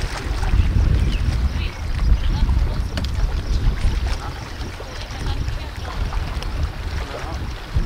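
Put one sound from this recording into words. Small waves lap against rocks on a shore.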